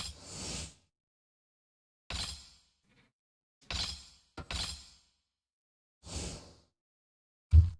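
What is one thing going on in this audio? Short whooshing menu sounds play from a video game.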